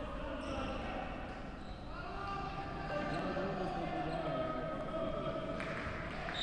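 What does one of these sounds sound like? Shouts and voices echo through a large indoor hall.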